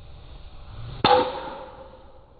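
A golf driver strikes a ball off a tee with a sharp crack.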